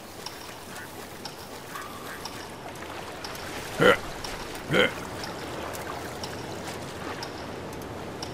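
Water splashes as a figure swims.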